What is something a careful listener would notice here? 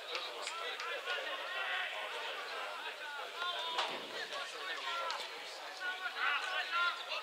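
Men shout and call out to each other across an open field, heard from a distance.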